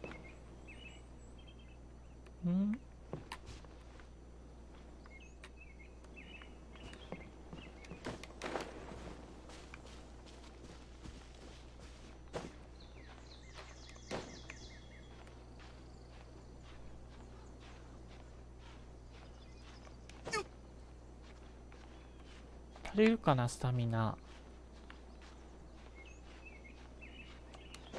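Footsteps scuff and scrape softly on grass and rock.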